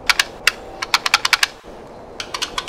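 A light switch clicks on and off several times.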